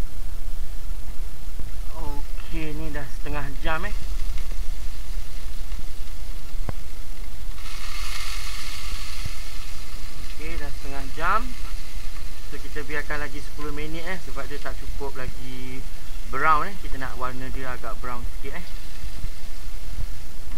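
A rotisserie oven hums steadily as it turns.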